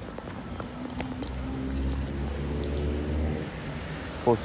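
Traffic hums steadily on a nearby road.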